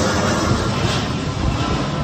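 A jet airliner roars low overhead.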